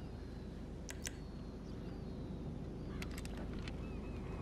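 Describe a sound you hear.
A rifle clicks as it is readied.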